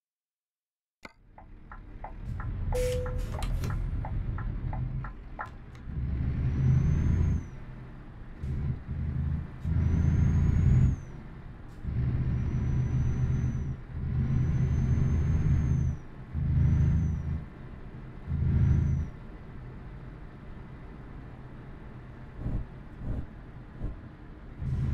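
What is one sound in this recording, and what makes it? A diesel truck engine rumbles and revs up in repeated bursts.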